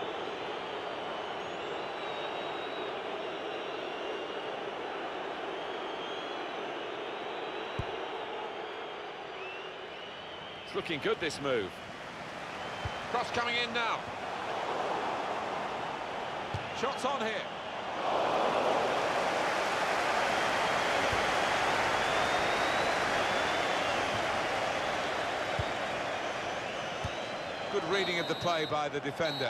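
A stadium crowd roars steadily, swelling louder partway through.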